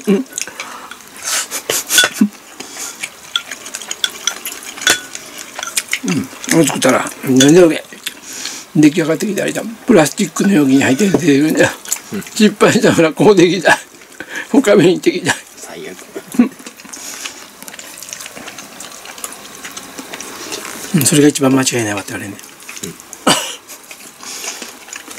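A woman slurps food from a bowl.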